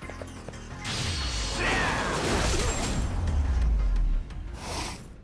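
A man groans in pain.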